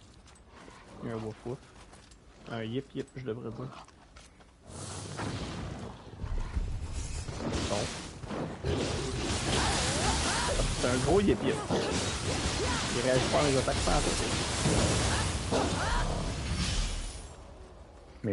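Swords clash and slash in a fierce fight.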